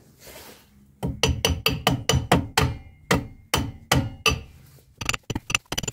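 A mallet knocks repeatedly against a metal brake drum.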